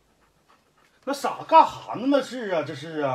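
A man speaks loudly with animation, close by.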